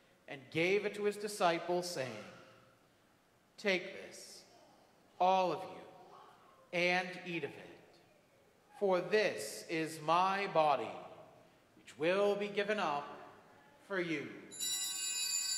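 A man speaks slowly and solemnly in an echoing room, pausing between phrases.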